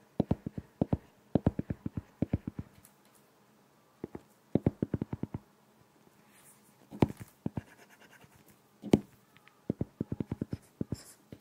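A stylus taps and clicks quickly on a tablet's glass.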